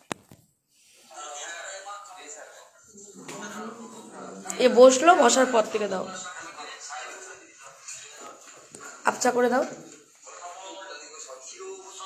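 A woman speaks close to the microphone in a calm, lively voice.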